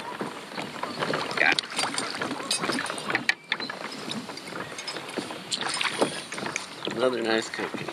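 A fish splashes in the water beside a boat.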